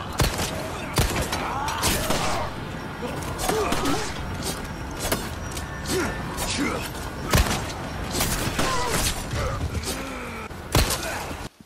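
A man groans and grunts in pain.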